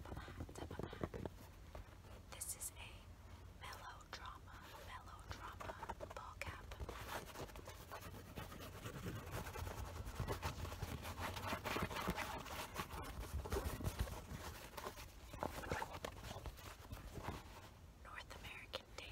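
Fabric rustles as a cap is handled.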